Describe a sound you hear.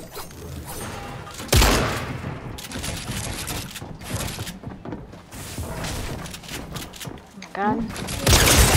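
Game building pieces snap and clatter into place with sharp bursts.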